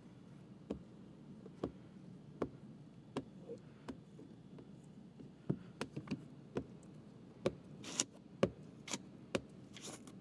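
A plastic squeegee knocks against glass again and again.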